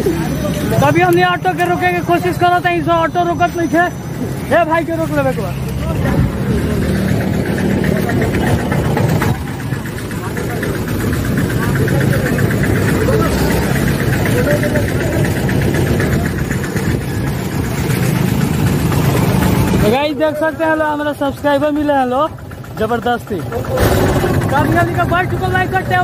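A young man talks loudly close by.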